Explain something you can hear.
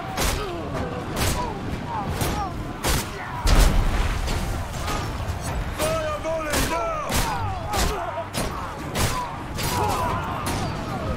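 Men shout and scream in battle.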